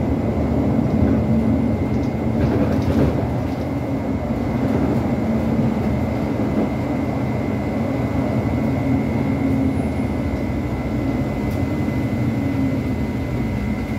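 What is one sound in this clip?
A bus engine hums and drones steadily while driving.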